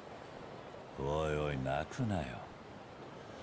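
A man speaks firmly in a deep voice.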